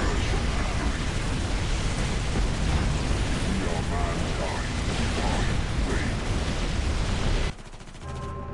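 Guns fire and explosions boom in a loud battle.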